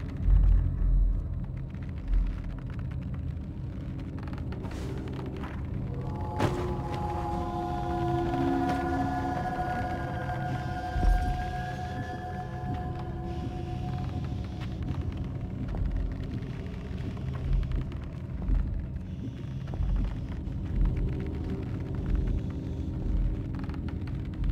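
Small feet thump and creak softly on wooden shelves.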